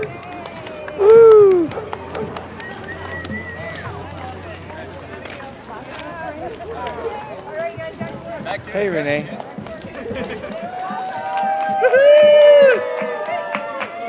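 People whoop and call out loudly nearby.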